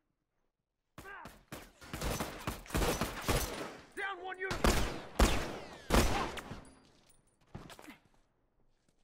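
Gunshots fire rapidly in bursts.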